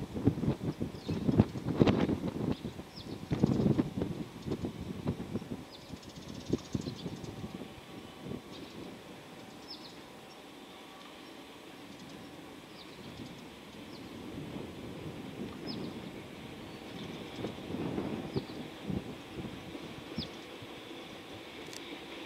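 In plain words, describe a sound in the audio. An electric freight train rumbles along the tracks in the distance.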